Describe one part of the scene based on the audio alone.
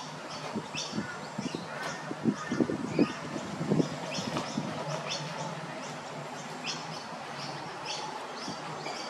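A small chick peeps in short high chirps.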